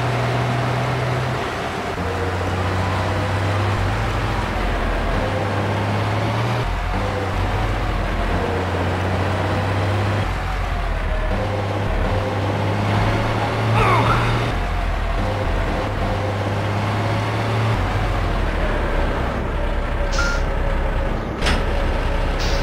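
A bus engine hums and drones steadily, shifting up and down in pitch.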